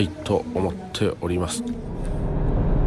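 A man speaks briefly and casually, close to the microphone.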